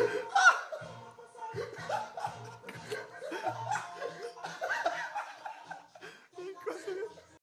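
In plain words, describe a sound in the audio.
Several young men talk and laugh loudly close by.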